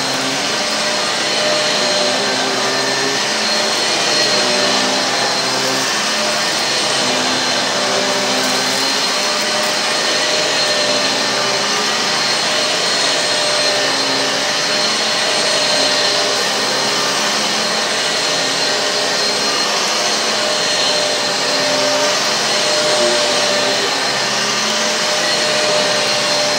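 An upright vacuum cleaner whirs steadily as it is pushed back and forth over carpet.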